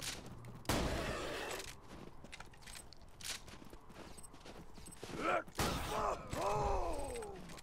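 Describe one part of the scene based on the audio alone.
Guns fire in loud, sharp bursts.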